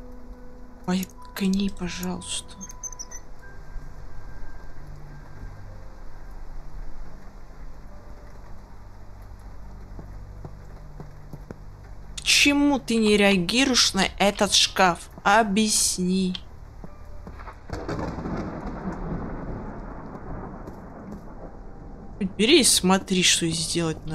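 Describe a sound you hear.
A boy talks with animation into a headset microphone, heard close.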